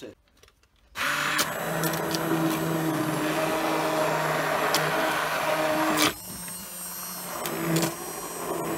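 A hand blender whirs steadily in a pot of soup.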